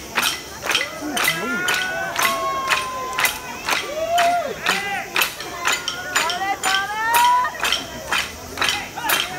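A bamboo flute plays a sliding, wavering melody.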